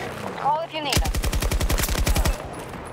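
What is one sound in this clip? A machine gun fires in a rapid burst.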